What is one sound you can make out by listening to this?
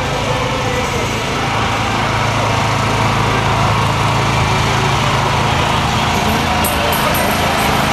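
An elderly man talks with women up close.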